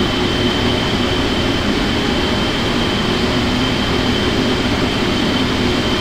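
A jet engine roars and whines steadily as an airliner taxis.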